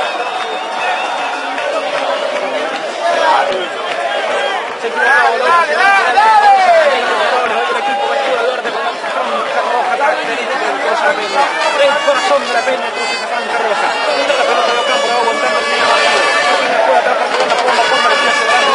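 A crowd of spectators chants and shouts nearby.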